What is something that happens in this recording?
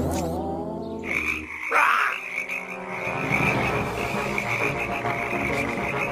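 A chorus of cartoon frogs croaks and sings loudly.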